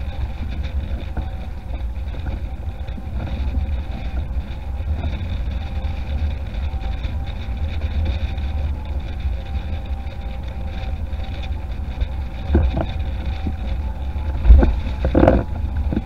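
Wind buffets loudly, outdoors.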